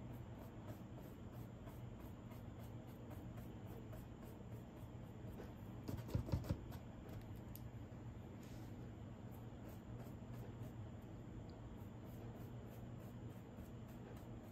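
A fine brush strokes paint onto canvas.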